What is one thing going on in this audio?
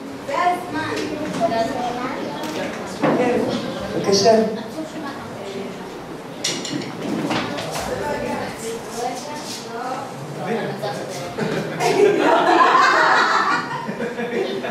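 A middle-aged woman speaks into a microphone.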